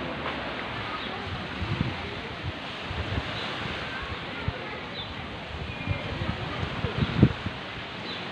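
Wind blows across the microphone in rough gusts.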